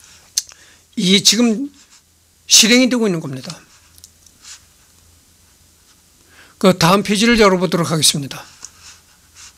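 A middle-aged man speaks calmly and close to a microphone, in short bursts.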